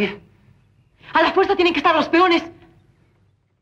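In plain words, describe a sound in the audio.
A young woman calls out loudly.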